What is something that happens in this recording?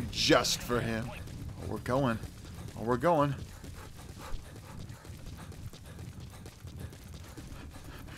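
Footsteps run over gravel.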